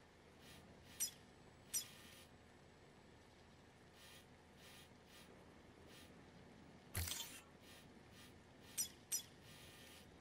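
Short electronic menu clicks sound now and then.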